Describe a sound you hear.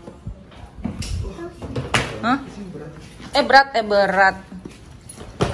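A young girl talks with animation nearby.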